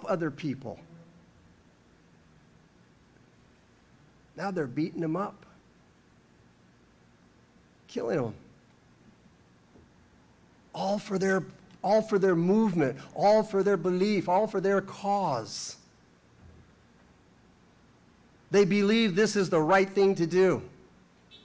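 An elderly man speaks slowly and earnestly into a microphone, with long pauses.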